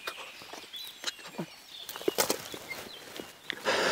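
Dry brush rustles close by.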